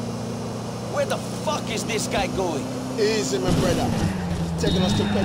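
A car smashes into traffic with a series of crashes and crunches.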